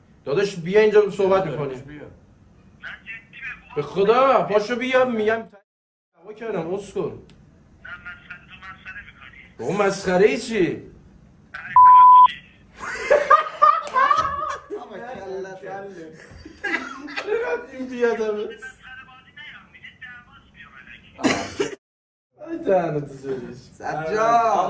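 Young men talk and joke with animation close by.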